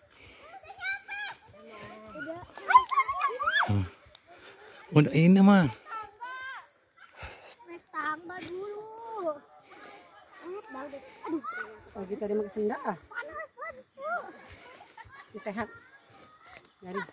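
Young girls chatter close by, outdoors.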